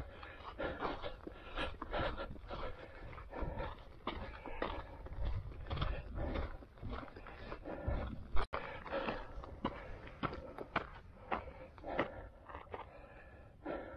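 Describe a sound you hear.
Footsteps crunch steadily on a dry dirt trail.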